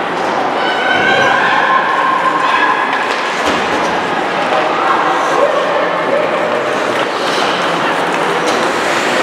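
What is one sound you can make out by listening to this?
A crowd of spectators cheers and shouts in a large echoing arena.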